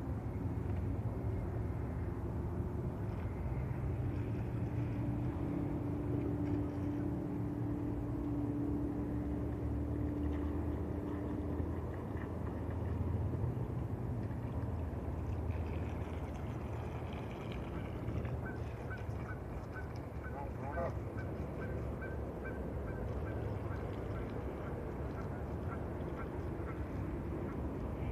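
A toy boat's small electric motor whirs steadily across the water.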